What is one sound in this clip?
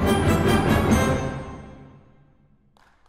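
A wind band plays a loud closing chord in an echoing hall.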